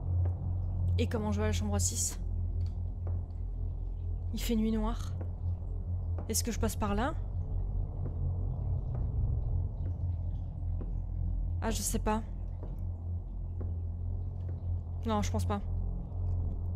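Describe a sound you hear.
A young woman speaks softly in short bursts, close to a microphone.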